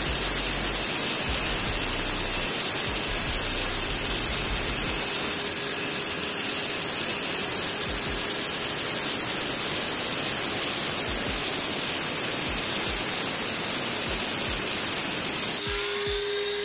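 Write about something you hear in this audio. A power saw cuts into a wall with a loud, steady, high whine and grinding.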